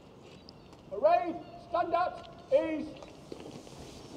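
A man shouts loud commands outdoors.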